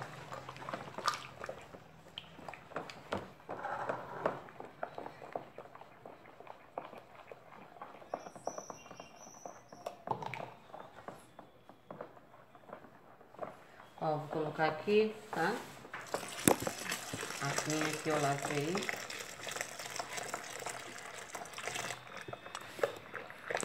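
A spoon stirs and scrapes through liquid in a tub.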